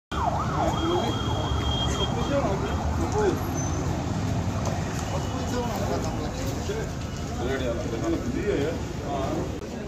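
A crowd of men talk and murmur nearby outdoors.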